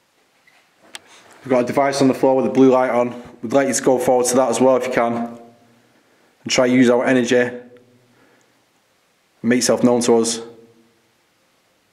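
A man speaks calmly nearby in short bursts.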